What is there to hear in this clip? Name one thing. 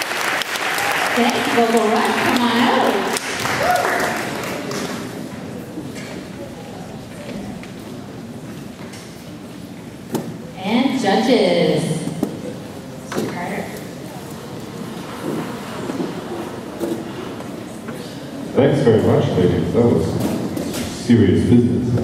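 A choir of young women sings together on stage.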